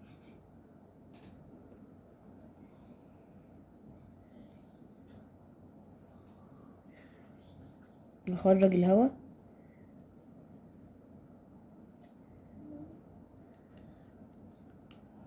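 Small plastic parts of a syringe click and tap softly.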